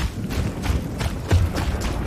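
Shallow water splashes underfoot.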